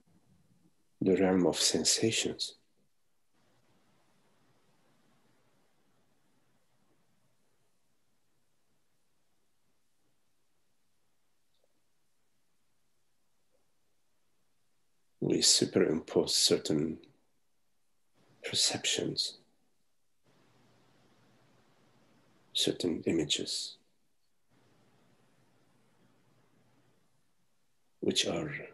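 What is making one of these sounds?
An older man speaks calmly over an online call, in short phrases with pauses.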